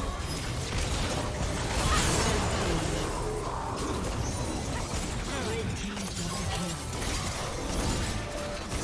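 Magic blasts and weapon strikes crackle and clash in a hectic fight.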